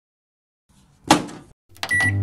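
A microwave door clicks shut.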